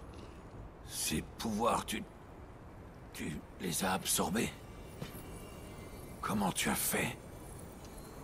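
A young man speaks with surprise, up close.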